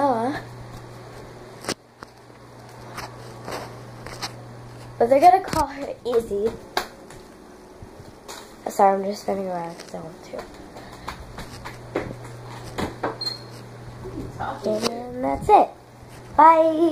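A young girl talks with animation close to a phone microphone.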